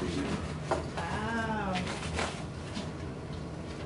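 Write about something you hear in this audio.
A woman types on a keyboard.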